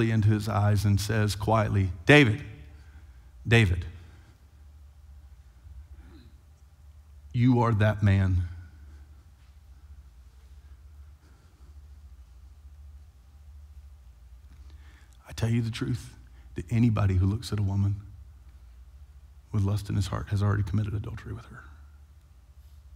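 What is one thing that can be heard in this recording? A man speaks through a microphone in short bursts, with long pauses.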